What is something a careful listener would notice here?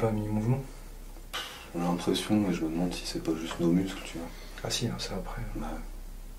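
A man speaks quietly, close to a microphone.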